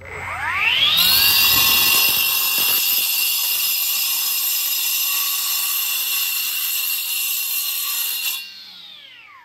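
A cut-off saw grinds loudly through a concrete block.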